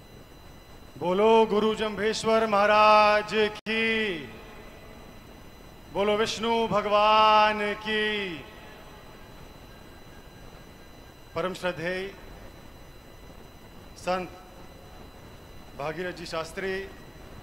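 A young man speaks loudly and with feeling through a microphone and loudspeakers, in long drawn-out phrases.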